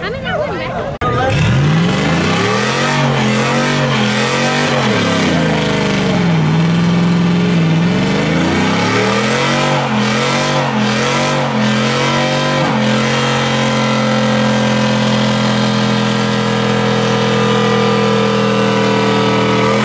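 A truck engine revs loudly up and down, then roars steadily.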